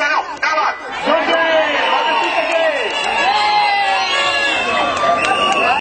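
A large outdoor crowd of men and women chatters and shouts all at once.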